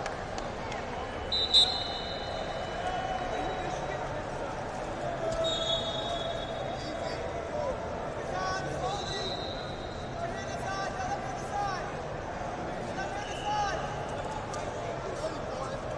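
Shoes squeak on a mat.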